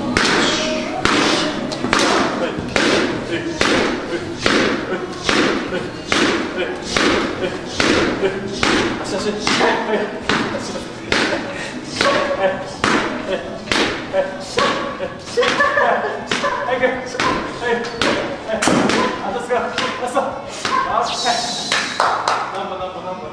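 A bat cracks against a ball again and again at a quick, steady pace.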